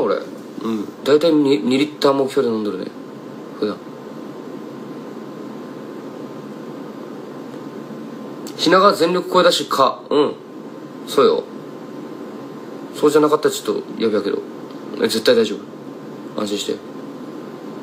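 A young man talks calmly and close to a microphone, in short bursts.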